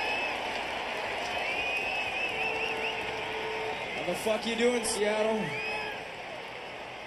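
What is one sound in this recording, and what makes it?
A crowd cheers loudly at a concert, heard through a recording.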